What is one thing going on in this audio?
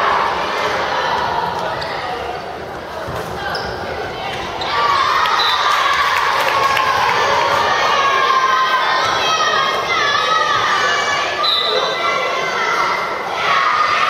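A crowd of spectators cheers and chants in a large echoing hall.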